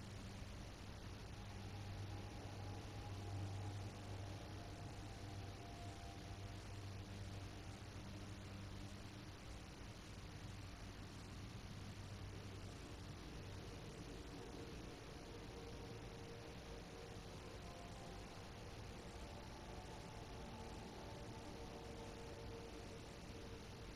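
A spacecraft engine hums and roars steadily.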